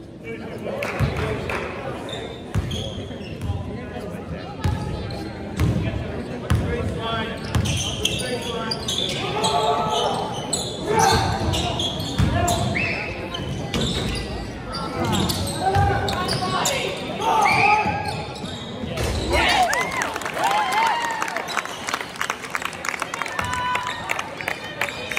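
Spectators murmur and shout in a gym.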